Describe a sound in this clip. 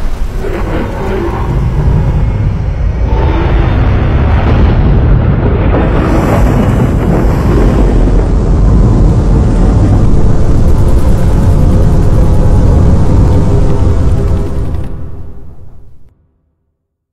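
Loud, heavy music booms from large loudspeakers.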